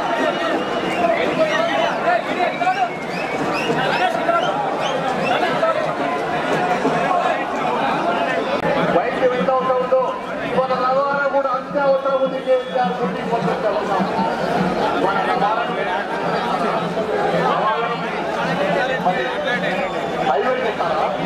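Many voices chatter and murmur in a crowd outdoors.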